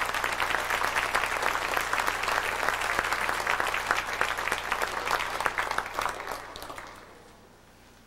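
A concert band plays loudly in a large echoing hall and then stops.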